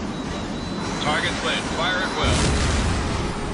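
A gun fires rapid bursts.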